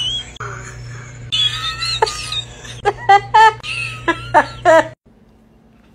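A young man laughs loudly and close by.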